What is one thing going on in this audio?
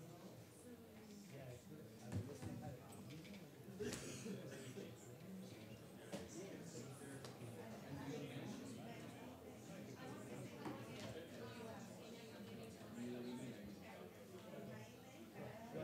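Many men and women chatter in a murmur across a room.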